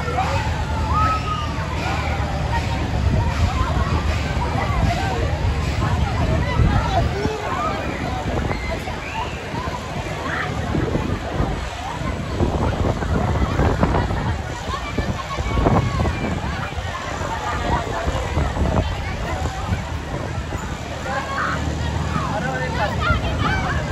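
A fairground ride whirls and rumbles with a steady low hum.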